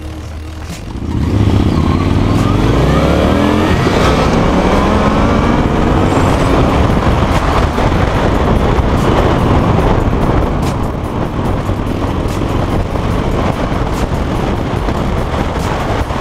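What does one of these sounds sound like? A motorcycle engine roars and revs up as the bike accelerates.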